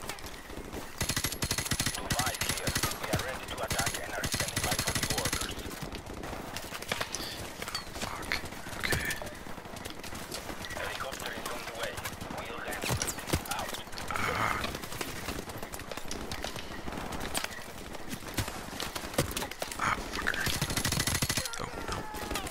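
Automatic rifles fire in rapid, loud bursts.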